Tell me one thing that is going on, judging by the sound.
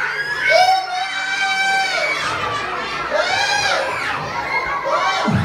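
A group of children sing together in long, drawn-out notes.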